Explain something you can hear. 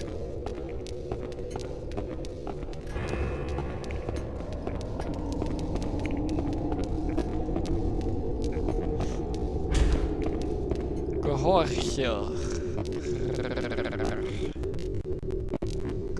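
Footsteps hurry over a hard stone floor in an echoing space.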